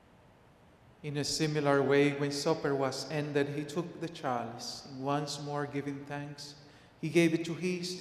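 An elderly man chants over a microphone in a reverberant hall.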